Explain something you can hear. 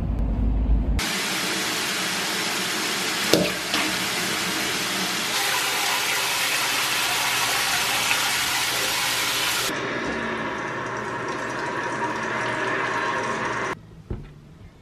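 Water runs steadily into a bathtub.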